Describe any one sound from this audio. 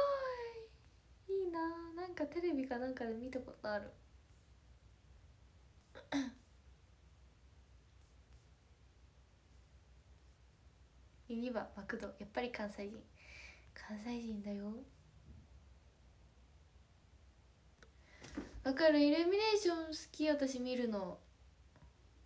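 A young woman speaks softly and cheerfully, close by.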